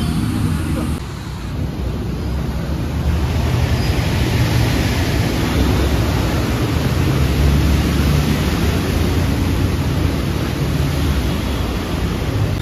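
Car engines rumble through a flooded road.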